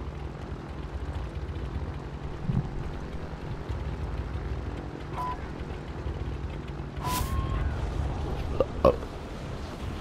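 A burning plane's engines drone with a low rumble.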